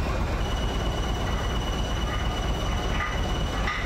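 Metal clanks against metal.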